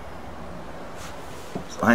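Loose guitar strings rattle and scrape as they are handled.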